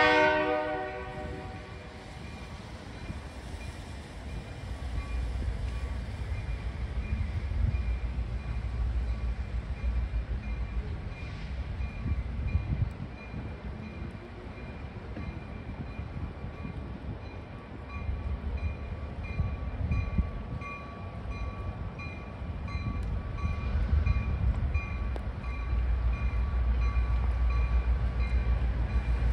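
A train engine rumbles as it slowly approaches, growing louder.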